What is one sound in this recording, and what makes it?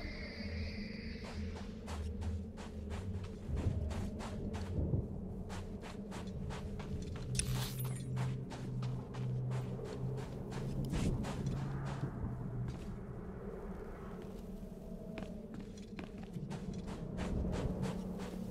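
Quick footsteps run over sand.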